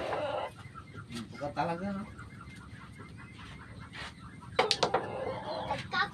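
A cue stick clicks against billiard balls.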